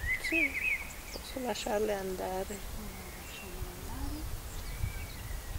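An elderly woman speaks calmly close by.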